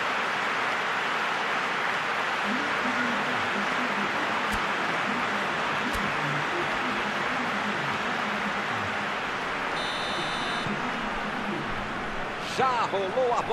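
A large crowd murmurs and cheers steadily in a stadium.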